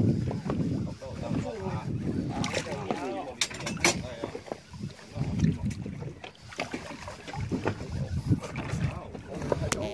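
Water splashes as a fish is pulled from the sea.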